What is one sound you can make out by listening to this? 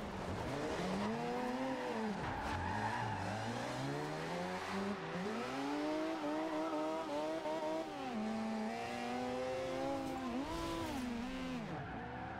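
A car engine revs high and drops as the car drifts through bends.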